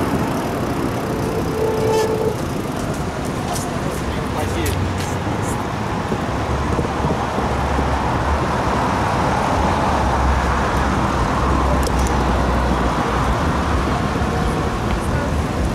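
Car tyres roll past on the road.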